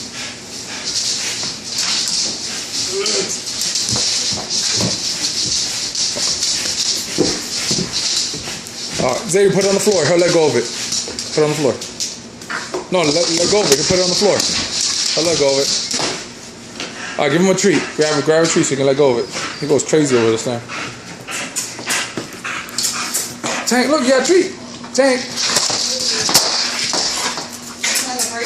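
A dog growls and grunts as it tugs at a broom.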